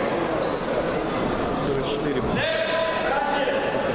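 A judo thrower slams an opponent onto the mat with a thud.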